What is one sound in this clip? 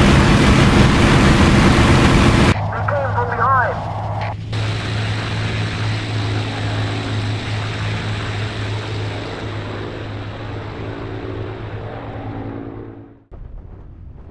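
A propeller aircraft engine drones loudly and then fades away.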